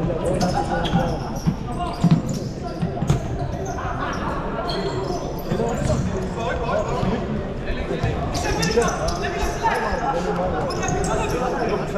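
A crowd of spectators chatters nearby, echoing in a large hall.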